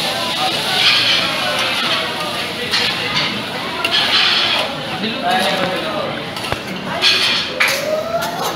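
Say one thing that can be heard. Food sizzles loudly on a hot griddle.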